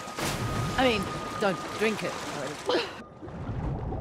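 Water splashes as a swimmer moves at the surface.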